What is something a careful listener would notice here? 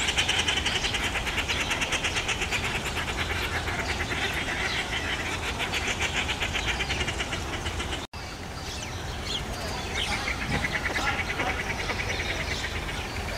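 Steady rain patters on leaves and the ground outdoors.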